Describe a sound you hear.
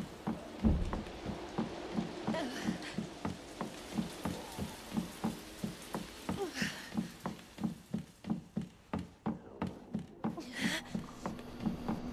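Footsteps tread steadily across a hard wooden floor.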